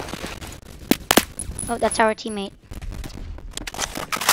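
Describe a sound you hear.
A rifle fires two shots.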